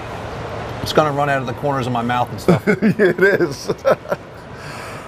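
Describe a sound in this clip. A man speaks calmly and close to a clip-on microphone.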